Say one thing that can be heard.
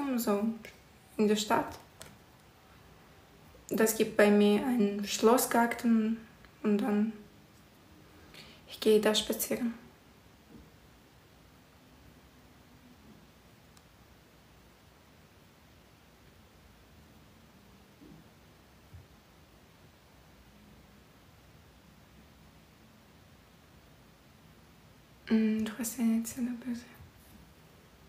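A young woman talks calmly and close by, with long pauses.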